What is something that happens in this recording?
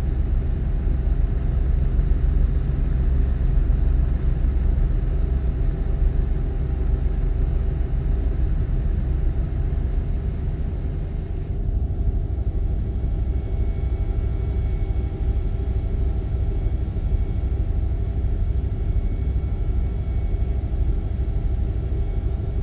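Tyres roll with a steady rumble on the road.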